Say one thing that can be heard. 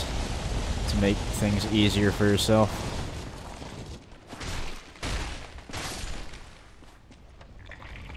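Blades clang and strike in a close fight.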